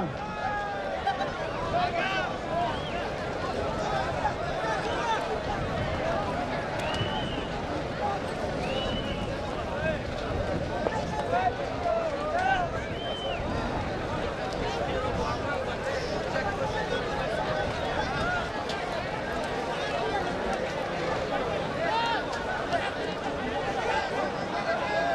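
A large outdoor crowd of men chatters and shouts.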